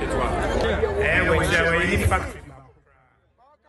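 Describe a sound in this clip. A large crowd of men and women chants loudly outdoors.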